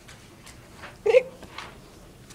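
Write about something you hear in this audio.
A young woman close by gasps and exclaims loudly.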